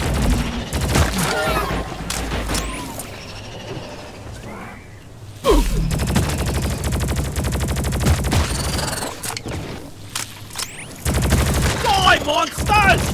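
Alien creatures shriek and chitter.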